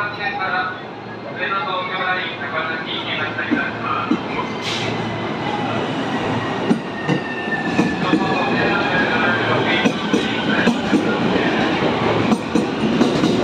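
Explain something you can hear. A train pulls out of a station, its wheels clattering and rumbling louder as it speeds up.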